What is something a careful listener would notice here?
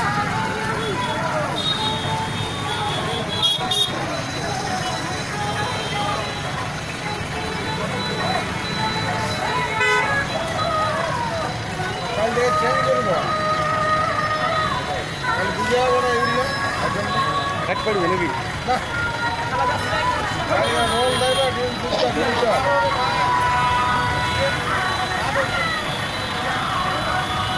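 Several men talk loudly nearby.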